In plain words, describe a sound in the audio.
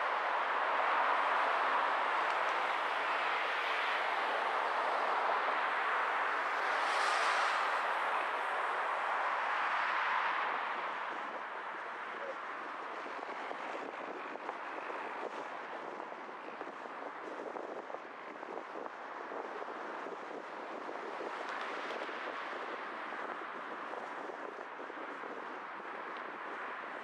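A car drives along a road with a steady rush of tyres and wind.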